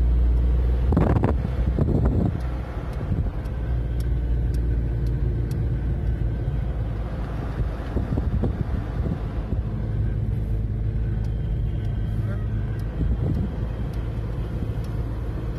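A car engine hums steadily from inside the car as it drives along.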